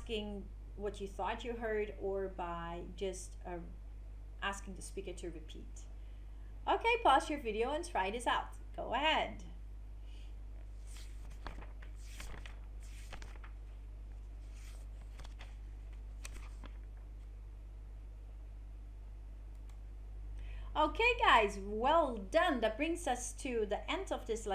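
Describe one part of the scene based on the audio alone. An older woman speaks calmly into a microphone, pausing now and then.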